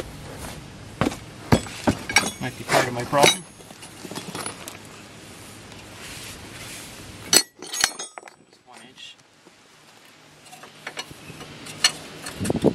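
Metal parts clink and knock as a brake disc is handled.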